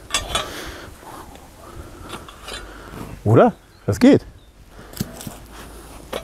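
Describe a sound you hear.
A metal can rattles as a man handles it.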